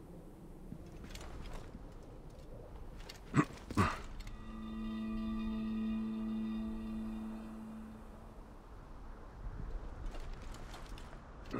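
Footsteps scrape on rocky ground.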